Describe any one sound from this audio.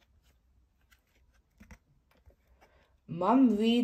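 A stiff board book page flips over.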